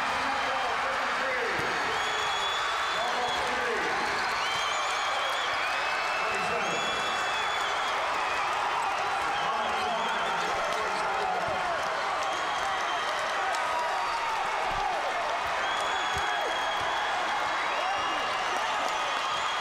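Young men shout and yell with excitement.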